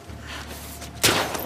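A thrown bottle smashes loudly.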